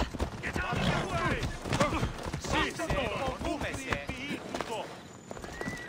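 Horse hooves clop on stone.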